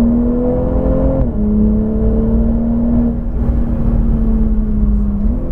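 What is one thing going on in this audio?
A car engine roars loudly at high revs, shifting pitch as it changes gear.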